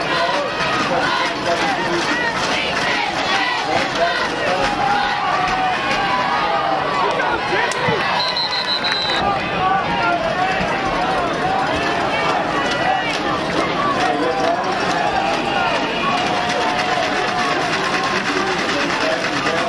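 A crowd of spectators outdoors chatters and cheers.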